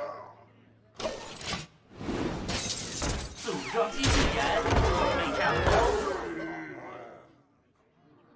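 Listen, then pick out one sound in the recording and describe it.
Magical game effects whoosh and crash in quick bursts.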